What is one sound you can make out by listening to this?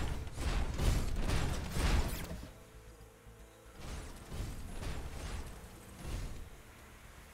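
Guns fire and explosions boom in a battle.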